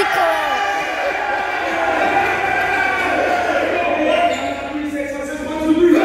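A group of young men cheer and clap through a loudspeaker.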